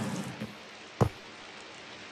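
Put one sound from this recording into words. A block is placed with a short thud.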